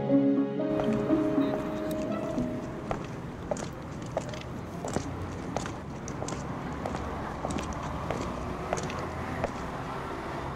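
Footsteps tap on hard ground outdoors.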